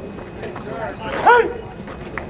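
A man shouts out a call loudly outdoors.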